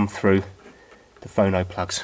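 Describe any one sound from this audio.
A cable plug scrapes and clicks into a socket.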